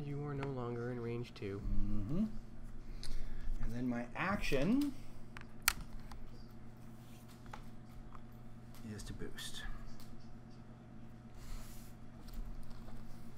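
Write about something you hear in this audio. Small plastic game pieces click and tap on a tabletop.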